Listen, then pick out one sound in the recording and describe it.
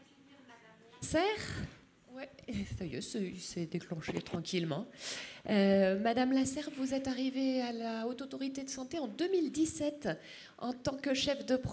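A woman speaks calmly into a microphone through loudspeakers in a large hall.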